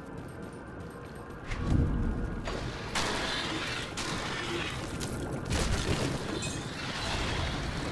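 Weapons strike and spells crackle in a fight.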